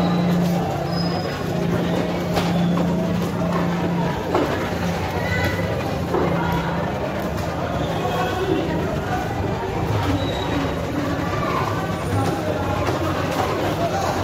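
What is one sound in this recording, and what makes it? Water splashes and pours onto a wooden block.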